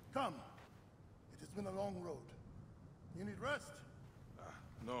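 A man speaks warmly, close by.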